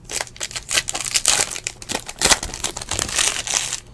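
A foil pack tears open.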